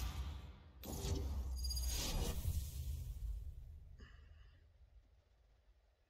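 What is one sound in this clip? A deep game whoosh swells and slowly fades.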